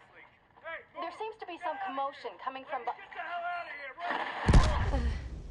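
A man shouts urgently through a television loudspeaker.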